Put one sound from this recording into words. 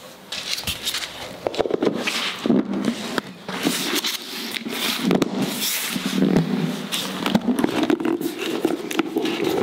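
A plastic lid clicks and rattles onto a container.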